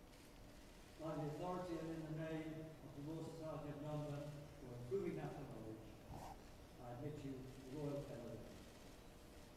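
A man speaks calmly in a large hall.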